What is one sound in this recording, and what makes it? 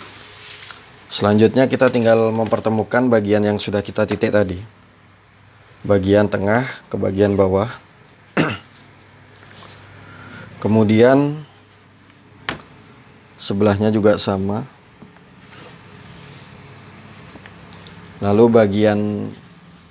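A wooden ruler slides softly across cloth.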